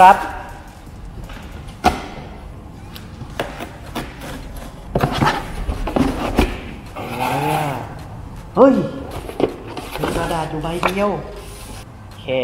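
Cardboard rustles and scrapes as a box is opened.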